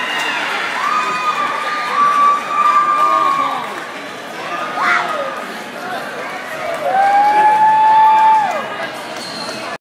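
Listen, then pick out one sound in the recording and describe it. A large crowd cheers and shouts in a large echoing hall.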